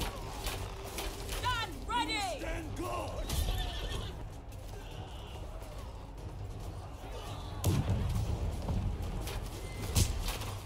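Weapons clash and thud in a fierce battle.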